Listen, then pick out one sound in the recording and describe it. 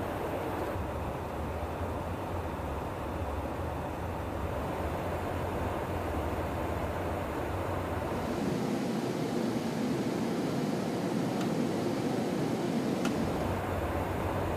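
Jet engines roar steadily in flight.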